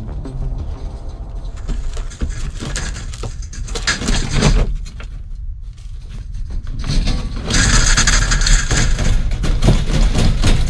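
A small animal scrabbles and rustles inside a wire cage, close by.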